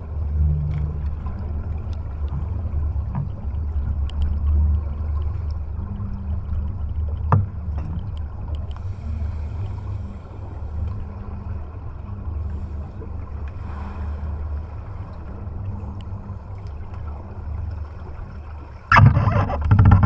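A low, muffled underwater rumble goes on steadily.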